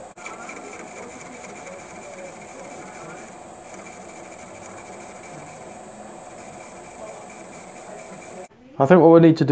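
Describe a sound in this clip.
A metal lathe runs with a steady hum and a thin high whine, then stops abruptly.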